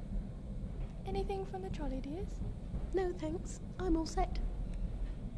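An elderly woman speaks briefly nearby.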